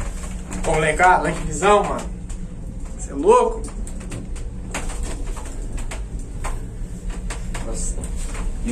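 A cable car cabin rattles and clicks as it glides along its cable.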